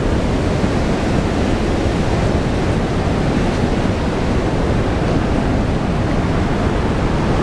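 Wind buffets loudly and steadily outdoors.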